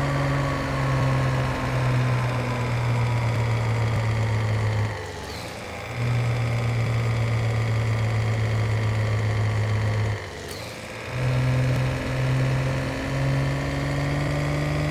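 A truck engine drones steadily, its pitch slowly dropping as it slows.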